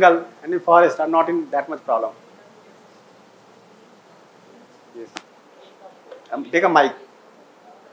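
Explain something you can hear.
A man speaks loudly to a group, in short bursts.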